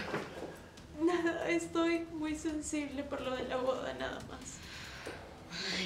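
A young woman answers in an emotional, shaky voice, close by.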